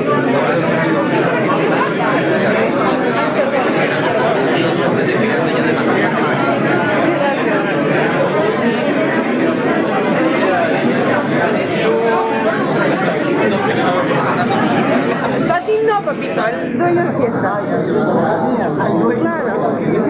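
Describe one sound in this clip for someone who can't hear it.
A crowd of men and women chatter loudly all around, close by.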